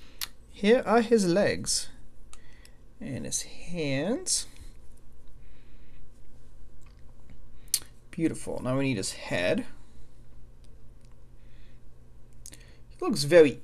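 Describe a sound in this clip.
Small plastic toy pieces click and snap together.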